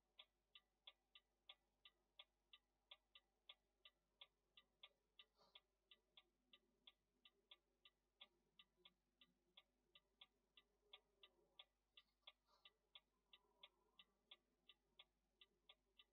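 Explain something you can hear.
A turn signal ticks quickly and evenly.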